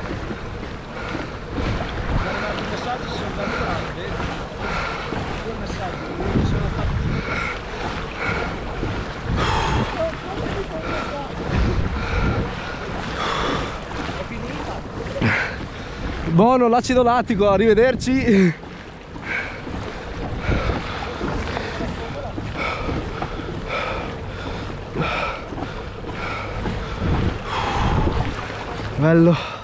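Water splashes and laps against a kayak's hull.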